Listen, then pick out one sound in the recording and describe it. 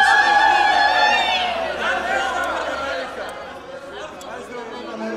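A woman sings loudly, holding long notes that slide and waver.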